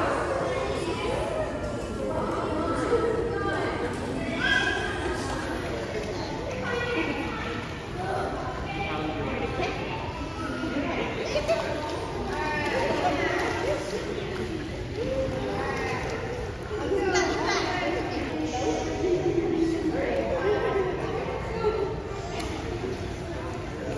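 Many people chatter and call out in a large echoing hall.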